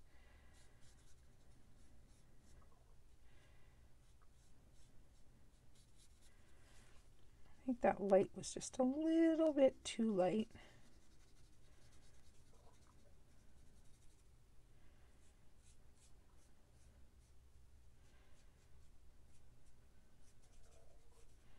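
A felt-tip marker scratches softly across paper.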